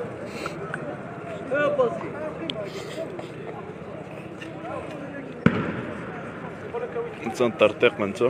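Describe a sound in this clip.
A crowd of young men shouts outdoors, some way off.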